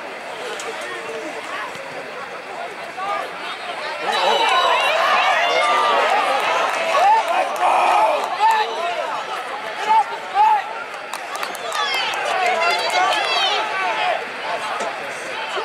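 A distant crowd of spectators cheers and shouts outdoors.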